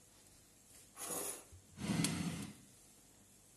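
A metal pan knocks and scrapes on a hard surface.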